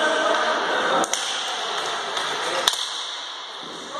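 Hockey sticks clack against a ball on a hard indoor floor.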